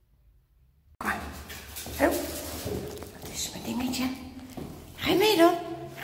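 A dog's paws patter on a hard floor nearby.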